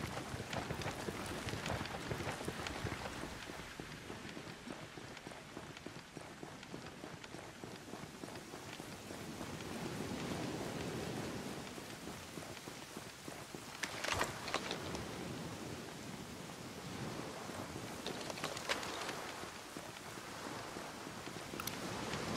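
Footsteps crunch on hard ground as a soldier moves in a crouch.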